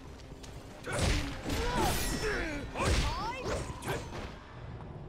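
A blade slashes and strikes in a fight.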